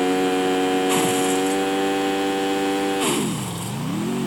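A car crashes with a sharp bang.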